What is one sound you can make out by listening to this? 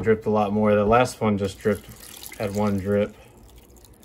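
Water pours and splashes into a plastic container.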